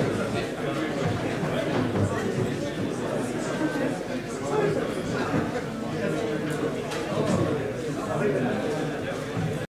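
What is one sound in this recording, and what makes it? A crowd of men and women chatter all around in a large echoing hall.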